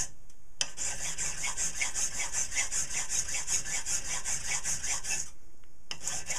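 A metal file rasps back and forth in quick, even strokes.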